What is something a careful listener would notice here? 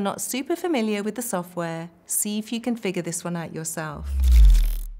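A woman speaks calmly and warmly into a close microphone.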